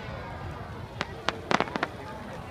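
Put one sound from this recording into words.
Fireworks crackle and pop in quick bursts.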